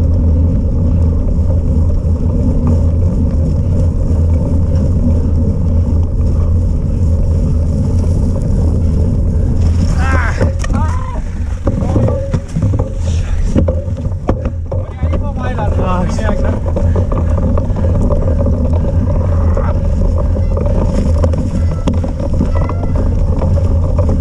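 Wind buffets loudly against a moving bicycle.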